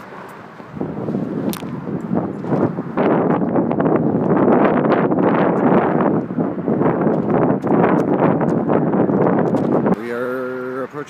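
Wind rushes and buffets loudly against the microphone.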